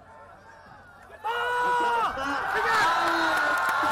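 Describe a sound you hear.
Padded football players collide in a tackle.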